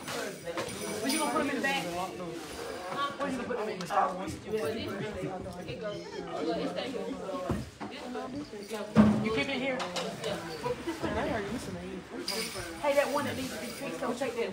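Several people chatter nearby.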